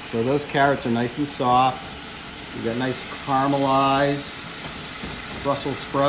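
A spatula scrapes and stirs in a wok.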